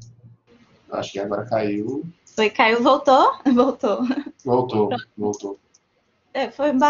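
A young woman speaks animatedly over an online call.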